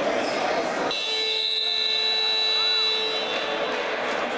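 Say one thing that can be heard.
A referee's whistle blows a long, steady blast.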